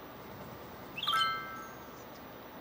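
A short bright notification chime rings out.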